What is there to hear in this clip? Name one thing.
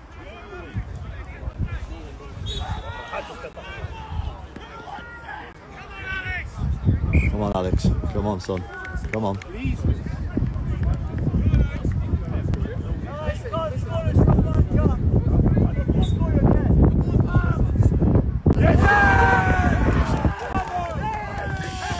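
Young men call out and talk across an open field.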